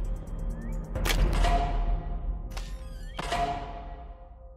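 Gunshots ring out with a short echo.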